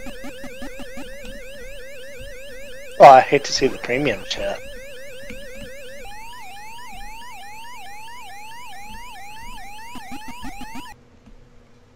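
A video game siren warbles quickly and steadily.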